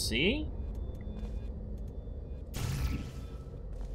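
A sci-fi gun fires with a sharp electric zap.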